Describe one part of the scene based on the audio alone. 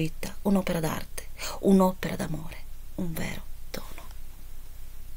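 A woman speaks expressively close to a microphone.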